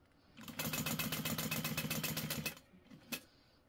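A sewing machine stitches rapidly in a steady rattling run.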